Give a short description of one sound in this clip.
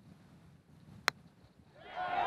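A golf club taps a ball with a short click.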